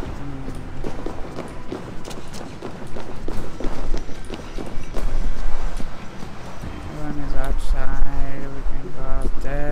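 Footsteps run and shuffle over a stone floor.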